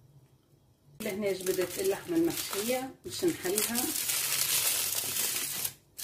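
Foil crinkles and rustles as it is handled.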